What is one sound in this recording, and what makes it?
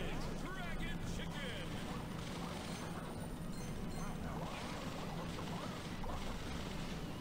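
Game explosions and shots crackle and pop.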